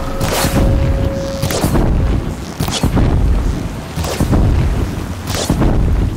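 Wind howls steadily through a sandstorm.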